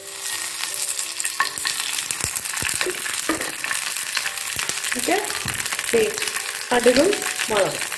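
Hot oil sizzles and crackles in a pan.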